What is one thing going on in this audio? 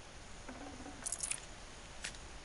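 A short chime sounds as items are picked up.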